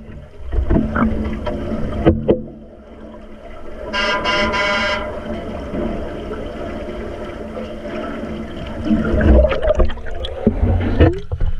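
Bubbles gurgle and rumble underwater.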